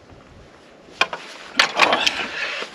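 Cutlery clinks on a plate.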